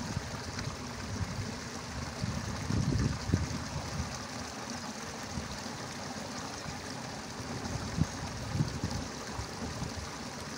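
Wind rumbles against the microphone outdoors.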